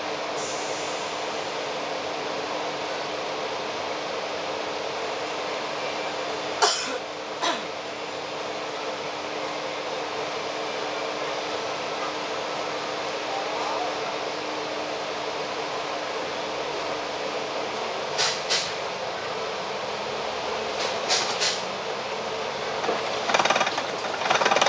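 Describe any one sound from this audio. Traffic hums steadily in a busy street.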